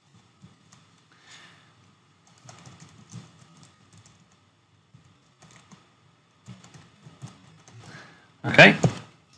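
Keys on a keyboard click in quick, uneven bursts of typing.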